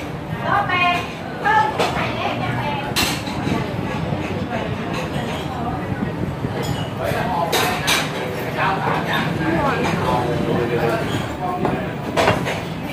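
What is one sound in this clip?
Diners chatter in the background.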